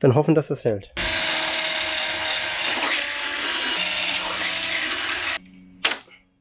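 A power drill whirs steadily, then stops.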